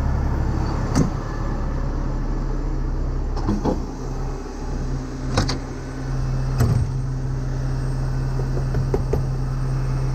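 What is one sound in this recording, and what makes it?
Metal parts clank and knock close by.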